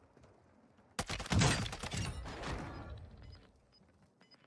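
A rifle fires with a loud booming crack in a video game.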